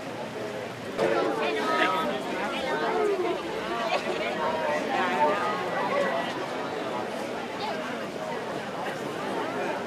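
A large crowd chatters and calls out nearby outdoors.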